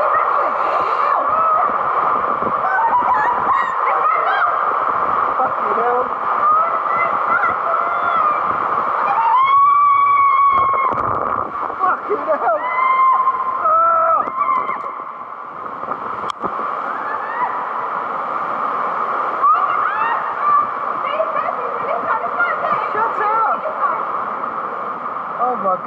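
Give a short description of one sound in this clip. Water rushes and splashes loudly.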